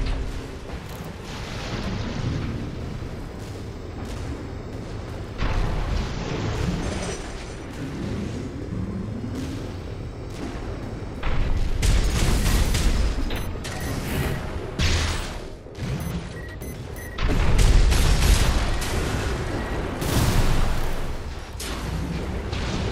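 A large mech's thrusters roar steadily.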